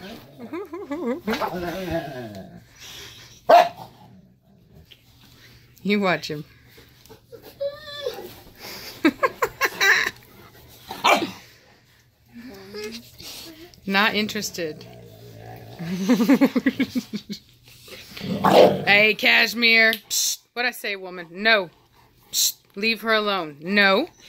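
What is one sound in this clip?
Several dogs whine and howl close by.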